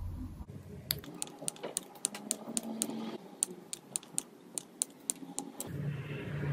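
Wire cutters snip off thin metal leads with sharp clicks.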